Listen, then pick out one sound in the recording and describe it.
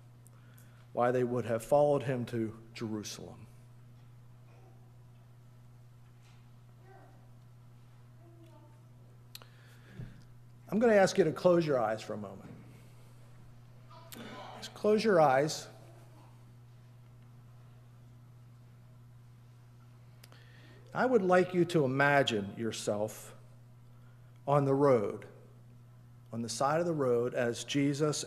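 An elderly man speaks slowly and calmly through a microphone, with long pauses.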